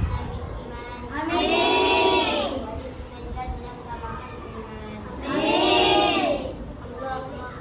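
A group of young children sing a short phrase together, close by, in a room with some echo.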